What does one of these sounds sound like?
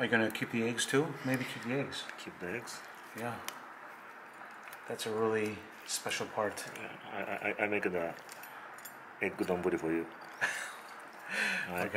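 A knife crunches and cracks through a hard shell.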